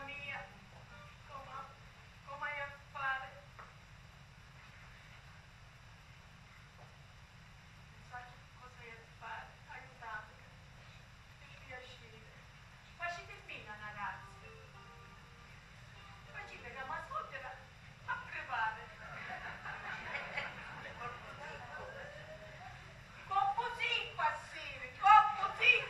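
A woman speaks expressively in a room with some echo, heard from a distance.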